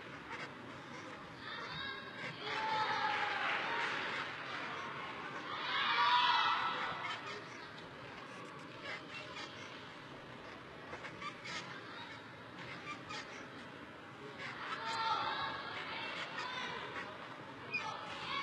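A gymnast's hands creak and squeak on a metal bar.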